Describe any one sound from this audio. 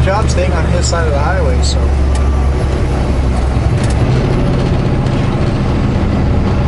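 Tyres rumble on the road.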